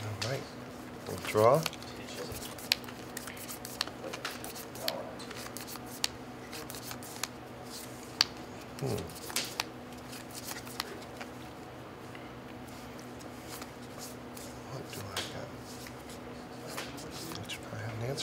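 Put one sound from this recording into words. Playing cards click and riffle as they are shuffled in hands.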